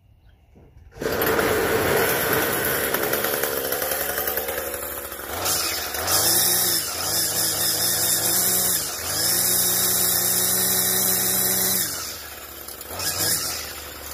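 A string trimmer engine starts and runs loudly, revving up and down.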